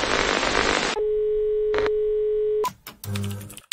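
A steady high test tone beeps.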